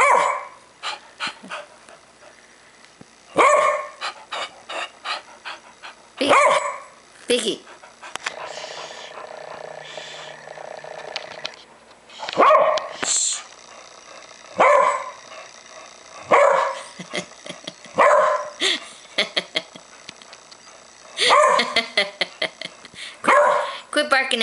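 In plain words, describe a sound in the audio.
A Pembroke Welsh corgi barks in short bursts.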